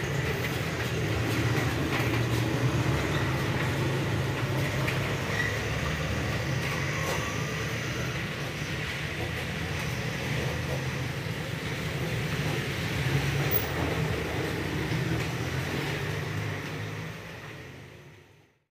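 A washing machine drum turns with sloshing water and a low steady hum.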